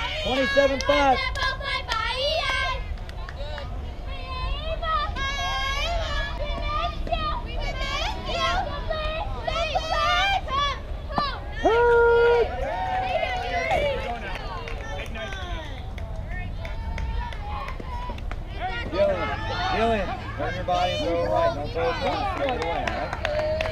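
Young women shout and cheer across the field outdoors.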